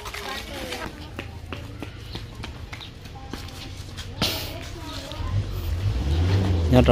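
A small child's footsteps patter quickly on a dirt road.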